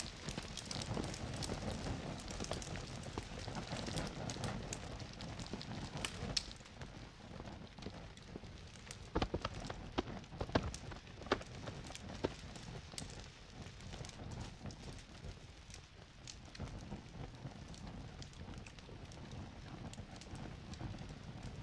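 Fires roar and crackle outdoors.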